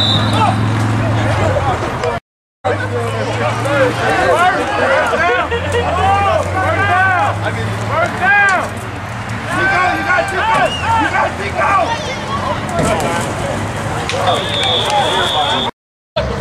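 A crowd of spectators shouts and cheers close by outdoors.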